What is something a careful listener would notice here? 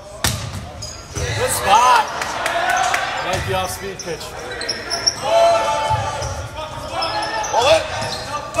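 Players shout and call out loudly in a large echoing gym.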